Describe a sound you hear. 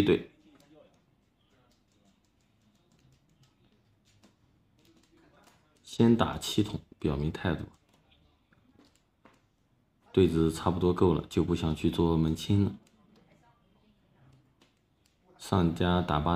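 Plastic tiles click and clack against each other on a table.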